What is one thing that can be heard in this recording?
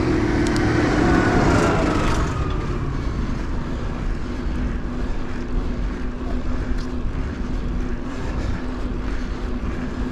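Bicycle tyres hum on an asphalt road.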